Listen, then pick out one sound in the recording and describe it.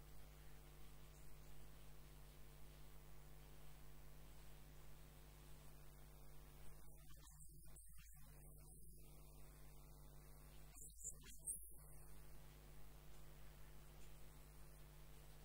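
Sandpaper rubs against spinning wood.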